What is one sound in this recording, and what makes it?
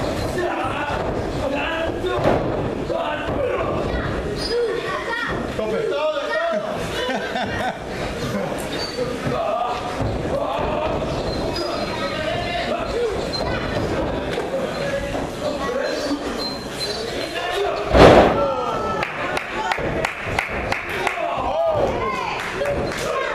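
A crowd of spectators shouts and cheers nearby in an echoing hall.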